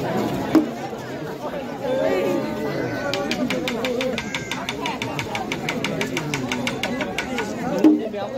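A large outdoor crowd of men and women chatters and calls out.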